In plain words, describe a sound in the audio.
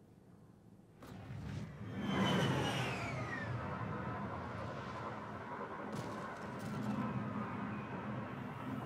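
A shuttle engine roars and whines as it flies overhead.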